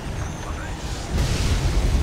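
A large blast roars and rumbles.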